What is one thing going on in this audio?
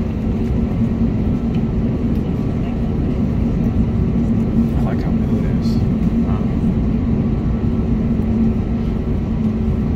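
Aircraft wheels rumble low over the pavement.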